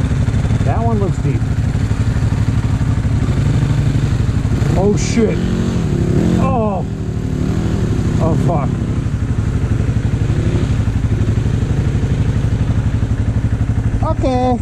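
A motorbike engine revs up and down in short bursts.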